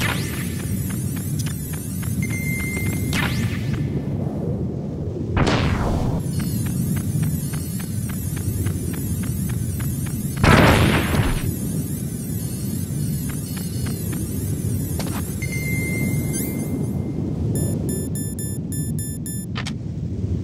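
Wind howls steadily over snow.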